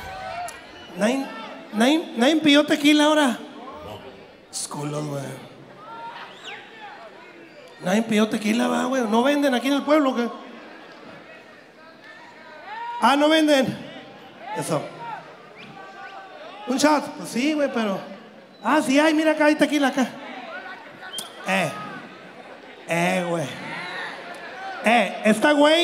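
A man talks loudly and with animation into a microphone, heard through loudspeakers in a large echoing hall.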